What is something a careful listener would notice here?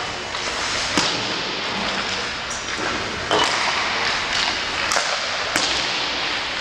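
Hockey pucks crack off sticks and boards, echoing in a large rink.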